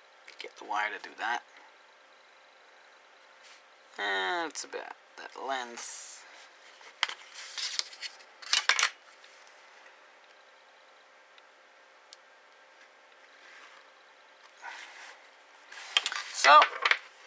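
A pen scratches lightly across paper.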